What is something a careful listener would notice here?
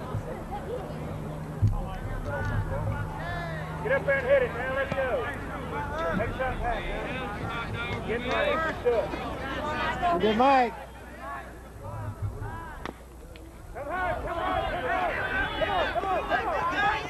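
Young men shout and chatter across an open outdoor ball field.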